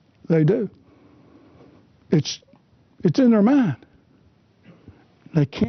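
A middle-aged man speaks calmly and deliberately into a close microphone.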